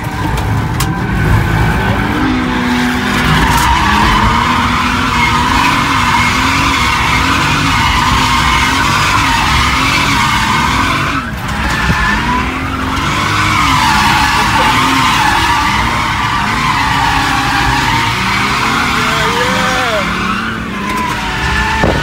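A car engine roars and revs up and down from inside the car.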